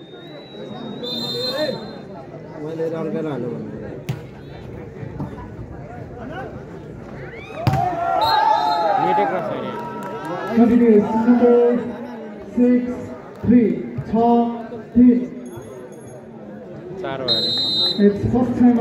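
A referee's whistle blows in short, shrill blasts.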